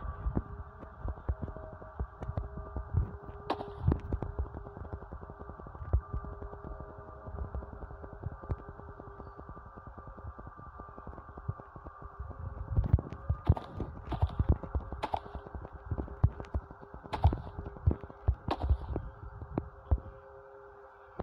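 Blocks snap into place with quick soft clicks.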